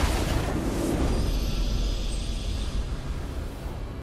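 A triumphant game fanfare swells.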